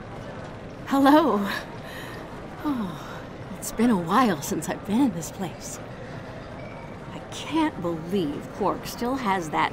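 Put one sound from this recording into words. A young woman speaks in a friendly, lively way.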